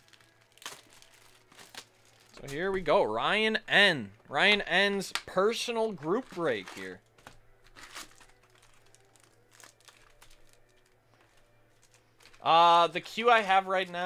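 Cardboard and plastic wrappers rustle as packs are opened.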